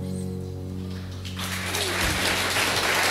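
A band plays a held chord on guitars and bass in a hall.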